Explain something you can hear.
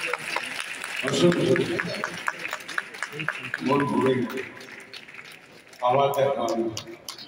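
A man sings into a microphone over loudspeakers in a large hall.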